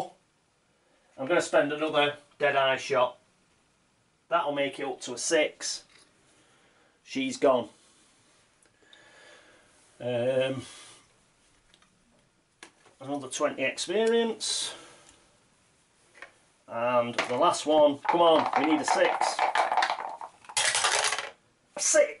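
Dice clatter into a plastic tray.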